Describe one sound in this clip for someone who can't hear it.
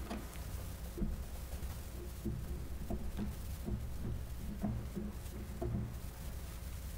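Footsteps tap slowly across a stone floor in a large echoing hall.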